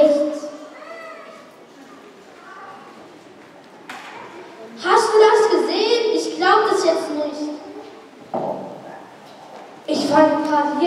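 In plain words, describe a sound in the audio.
Children sing together in a large echoing hall.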